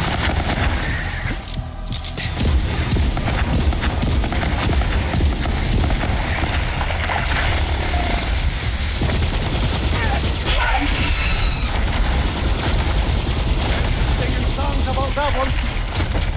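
Energy blasts crackle and boom.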